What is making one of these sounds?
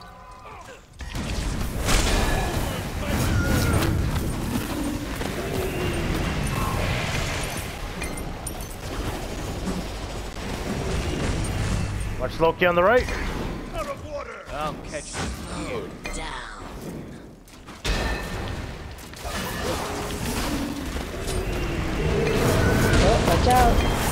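Video game combat effects crackle and whoosh as spells are cast.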